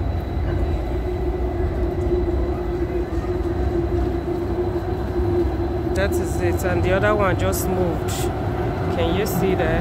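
A tram hums steadily as it rolls past.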